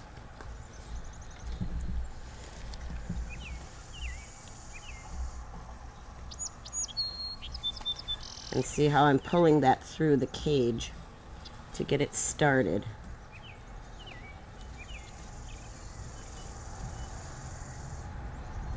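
Leaves rustle as plants are handled.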